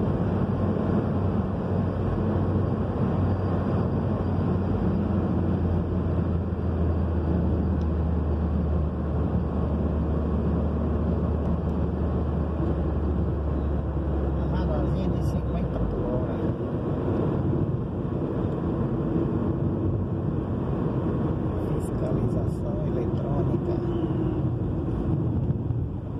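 Tyres roar on asphalt.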